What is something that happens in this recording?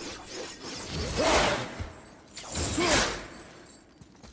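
An axe whooshes through the air on a chain.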